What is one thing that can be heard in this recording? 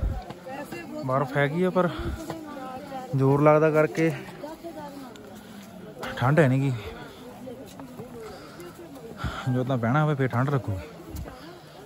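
A man chants loudly nearby.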